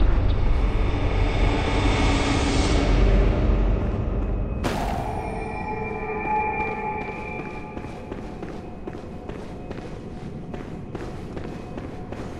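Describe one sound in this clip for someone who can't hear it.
Footsteps tap steadily across a stone floor.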